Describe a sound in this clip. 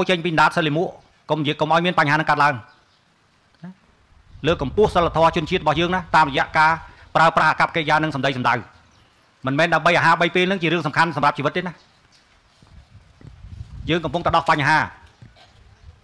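A middle-aged man speaks firmly into a microphone, his voice amplified through loudspeakers.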